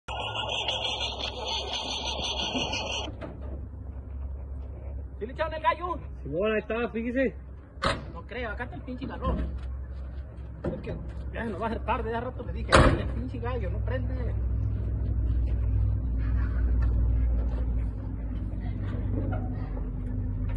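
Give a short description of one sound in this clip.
A truck engine idles with a low rumble.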